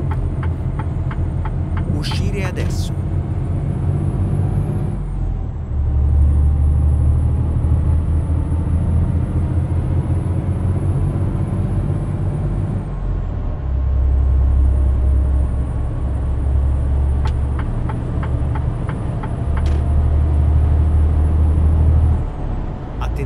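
A truck engine hums and drones steadily as it drives, swelling louder at times.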